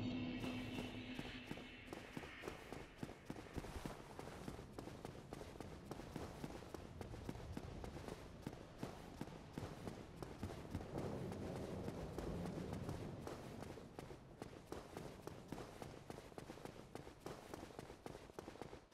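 Armoured footsteps clank quickly on stone.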